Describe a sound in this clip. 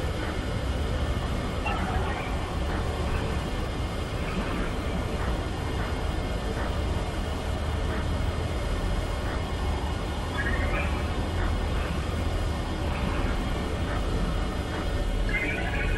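Static hisses and crackles steadily.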